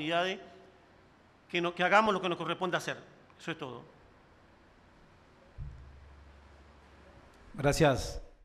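A middle-aged man speaks calmly into microphones, in short bursts with pauses.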